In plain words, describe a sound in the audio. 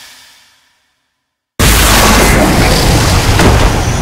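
A heavy blow lands with a wet, bursting splatter.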